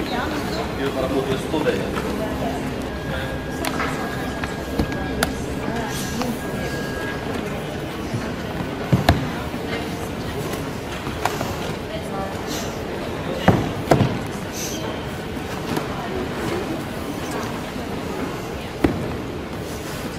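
Books and bundles thump onto a counter.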